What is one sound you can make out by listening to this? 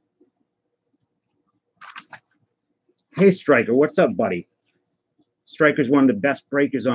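A cardboard box is set down softly on carpet.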